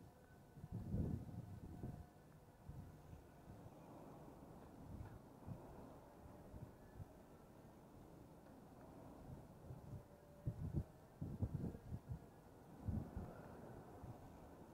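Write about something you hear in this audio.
Wind rumbles and buffets against the microphone.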